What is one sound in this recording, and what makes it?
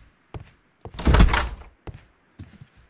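A door swings open with a loud creak.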